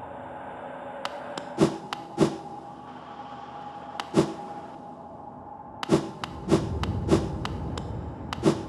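Light footsteps tap on a hard floor.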